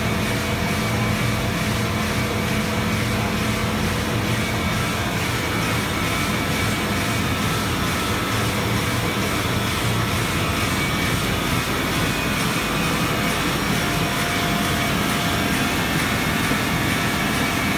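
Printing machinery hums and rumbles steadily in a large room.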